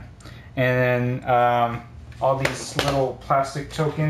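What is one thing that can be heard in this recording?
A building model is placed down on a tabletop with a light knock.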